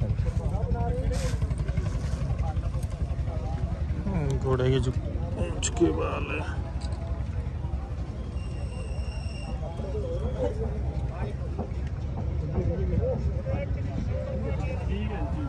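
Several men talk nearby in a crowd.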